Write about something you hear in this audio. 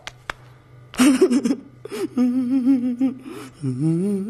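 A man whines in a tearful voice.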